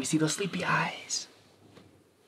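A man laughs softly close by.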